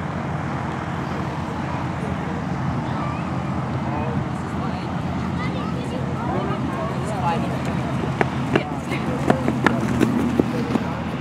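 A propeller plane drones steadily overhead.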